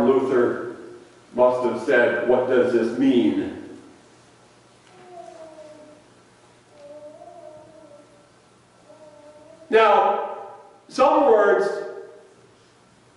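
A middle-aged man speaks calmly in a large echoing hall.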